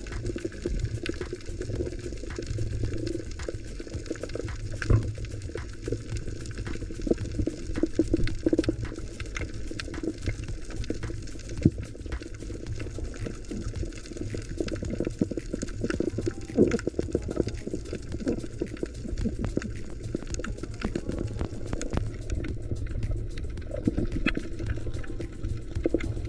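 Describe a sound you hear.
Small crackles and clicks sound all around underwater.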